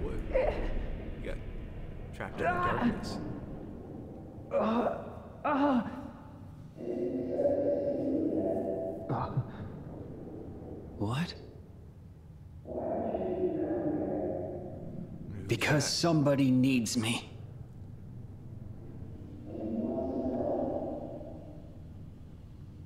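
A young man talks casually through a microphone.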